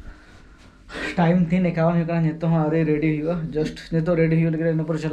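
A young man talks with animation, close up.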